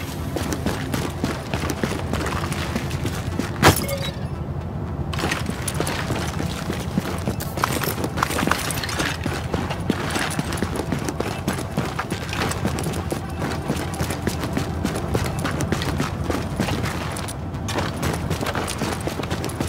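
Footsteps crunch steadily over snowy, littered ground.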